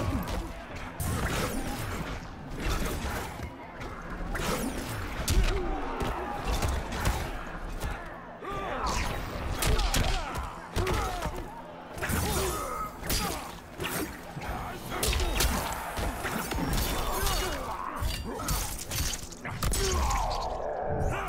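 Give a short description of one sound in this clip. Heavy punches and kicks land with sharp thuds and cracks.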